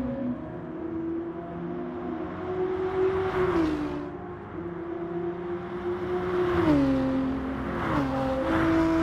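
A racing car engine roars at high revs, dropping in pitch with each gear change.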